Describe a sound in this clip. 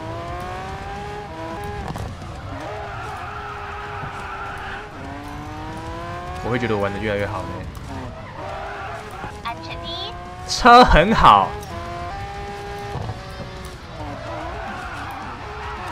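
A racing car engine whines steadily, rising in pitch and dropping between gear changes.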